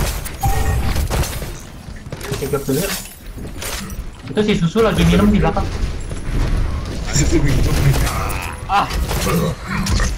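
Explosions burst nearby.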